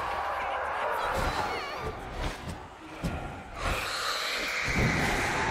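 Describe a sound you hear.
A sword swishes and strikes in a fight.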